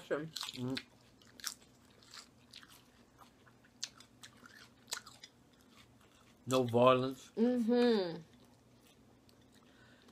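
A man and a woman crunch crisp lettuce close to a microphone.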